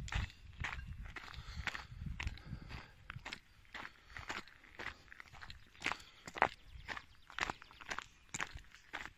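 Footsteps crunch steadily on gravel, close by.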